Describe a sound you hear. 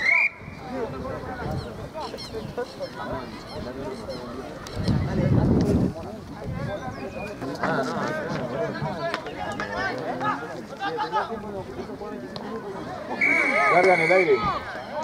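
A referee's whistle blows with short, sharp shrill blasts.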